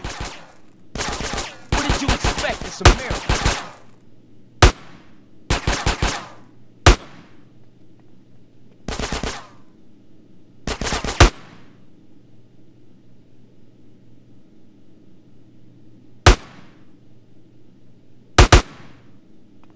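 Automatic gunfire rattles off in short, sharp bursts.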